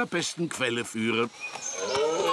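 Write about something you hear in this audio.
A man sings with a strong voice.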